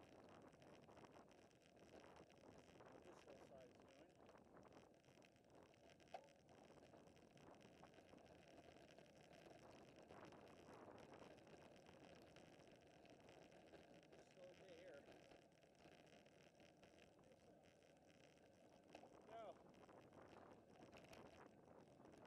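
Bicycle tyres hum steadily on a paved road.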